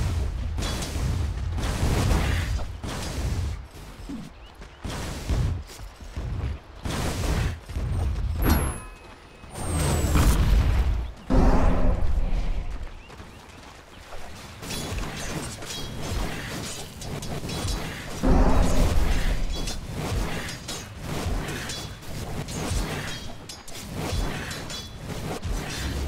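Weapons clash and strike in quick bursts during a fight.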